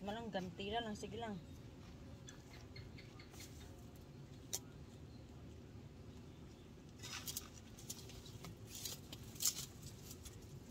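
Leaves rustle as plants are pulled and snapped.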